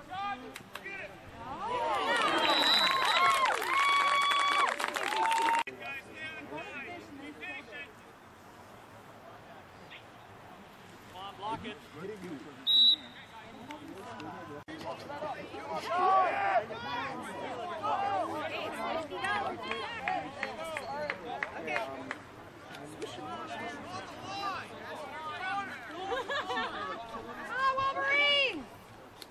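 A crowd of spectators cheers and shouts loudly nearby, outdoors.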